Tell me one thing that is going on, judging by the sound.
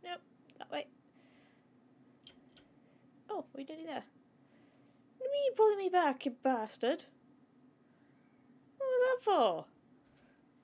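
A young woman talks with animation into a close microphone, in short bursts.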